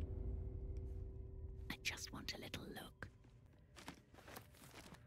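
Footsteps scuff on a stone floor.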